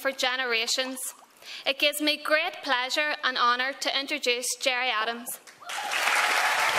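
A woman speaks clearly into a microphone in a large hall.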